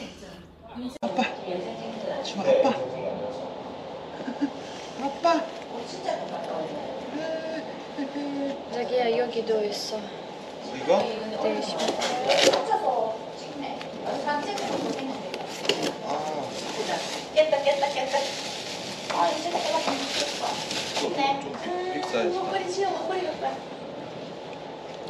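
A woman talks softly and warmly close by.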